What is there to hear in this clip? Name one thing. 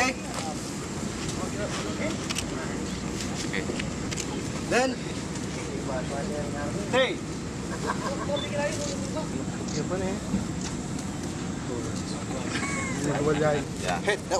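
Young men talk and call out outdoors.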